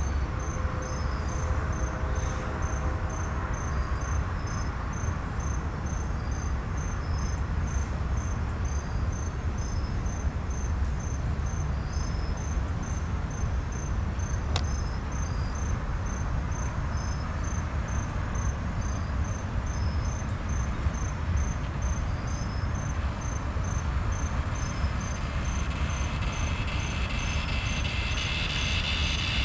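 A freight train rumbles steadily past nearby.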